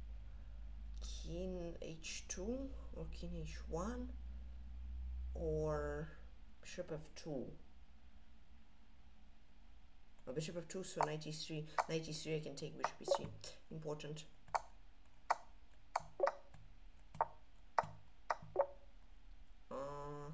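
A young man talks quickly and with animation, close to a microphone.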